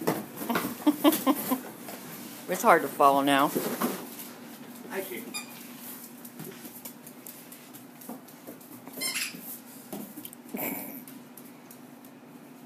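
A dog's claws click and patter on a wooden floor.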